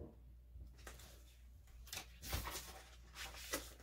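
Book pages turn with a soft rustle.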